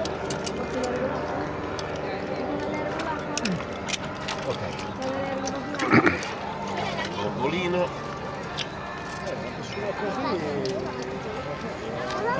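A crowd murmurs outdoors in the background.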